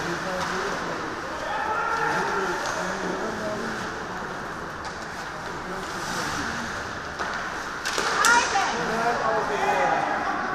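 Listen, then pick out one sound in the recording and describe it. Players shout to each other across an echoing rink.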